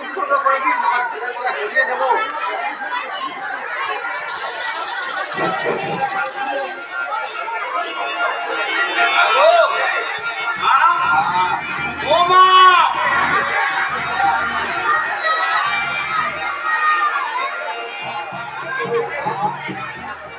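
Musicians play instruments on a stage through loudspeakers.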